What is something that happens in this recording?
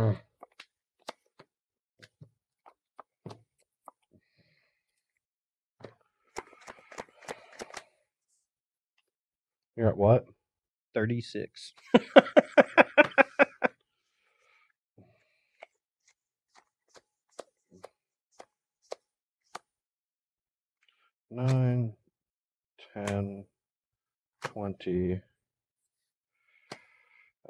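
Playing cards are shuffled and tapped on a table.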